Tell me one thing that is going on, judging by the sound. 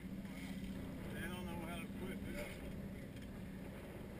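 Water splashes against the side of a boat.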